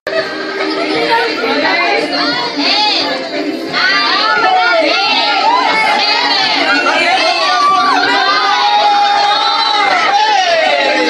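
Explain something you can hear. A crowd of young men and women laughs and shrieks close by.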